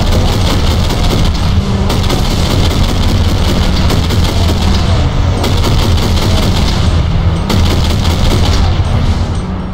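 A heavy gun fires in rapid bursts.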